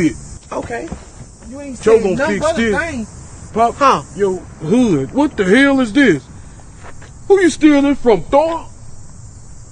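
An adult man speaks loudly and with animation nearby.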